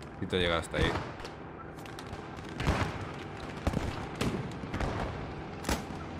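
Rifle shots crack nearby.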